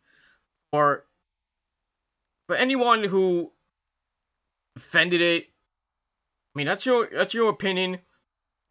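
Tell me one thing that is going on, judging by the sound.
A man speaks calmly in short bursts, close to a microphone.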